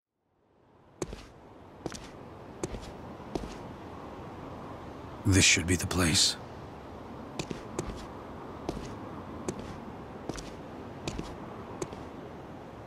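Heavy boots step on dry dirt.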